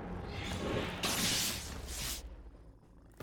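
A magic spell whooshes and crackles in a game.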